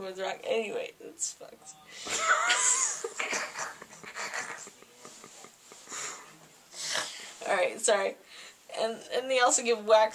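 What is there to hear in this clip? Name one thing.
A young woman talks playfully close by.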